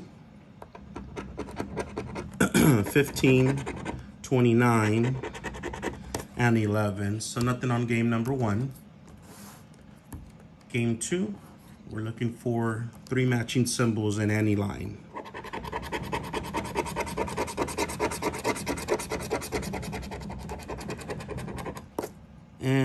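A plastic scraper scratches rapidly across a card.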